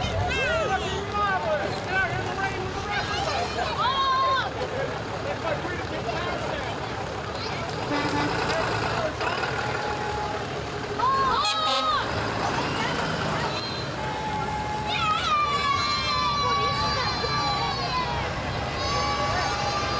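A fire truck's engine rumbles as it creeps slowly past.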